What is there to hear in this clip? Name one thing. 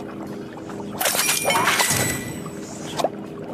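A bright sparkling fanfare swells and fades.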